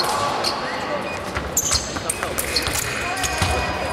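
Fencing blades clash.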